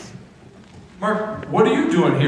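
A middle-aged man sings loudly through a microphone.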